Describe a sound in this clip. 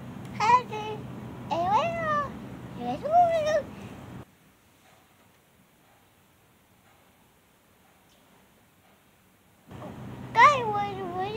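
A small child babbles and squeals in a high voice close by.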